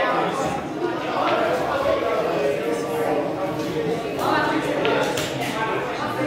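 Several men talk and chat nearby.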